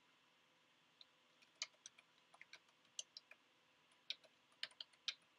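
Keys on a keyboard click in quick, uneven taps.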